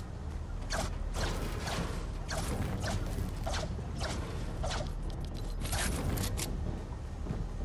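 A pickaxe strikes metal with sharp, ringing clangs.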